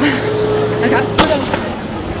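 A gunshot cracks out once.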